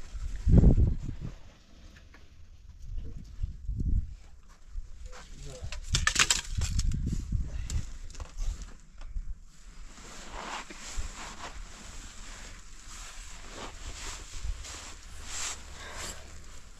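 Clothing rustles as a baby is handled.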